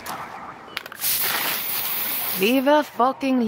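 A spray can hisses loudly in a steady burst.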